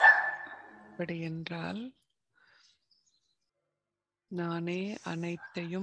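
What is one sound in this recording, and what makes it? An elderly woman speaks calmly into a microphone, heard through a loudspeaker.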